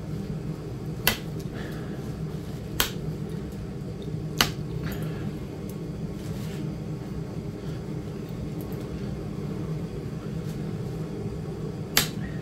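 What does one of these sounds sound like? A small rotary tool whirs steadily as it grinds.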